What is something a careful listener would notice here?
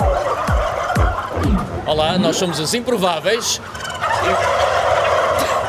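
A flock of turkeys gobbles loudly and close by.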